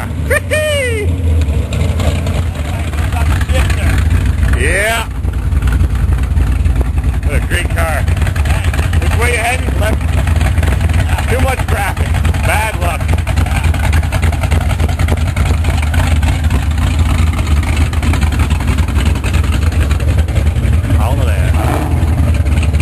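A man talks cheerfully and loudly over the engine, close by.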